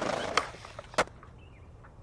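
A skateboard lands with a sharp clack.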